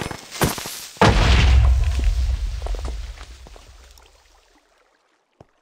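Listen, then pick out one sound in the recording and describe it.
A loud explosion booms and rumbles, then slowly fades.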